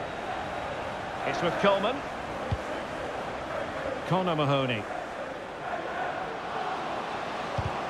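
A large crowd murmurs steadily in the distance.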